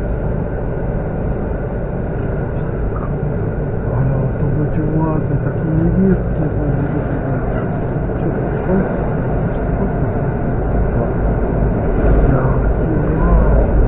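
An electric multiple unit train rumbles along the rails, heard from inside the carriage.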